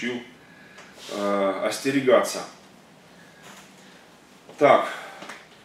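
A middle-aged man speaks calmly into a nearby microphone, pausing between phrases.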